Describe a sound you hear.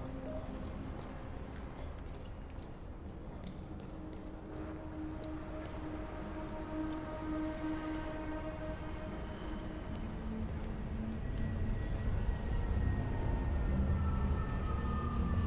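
Footsteps tap on a wet pavement.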